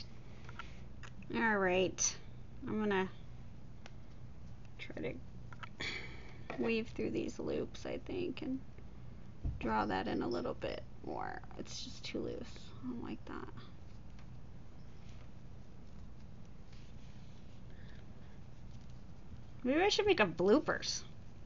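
Fabric rustles softly as it is handled and folded.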